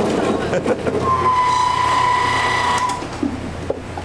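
A machine whines with a steady high hum.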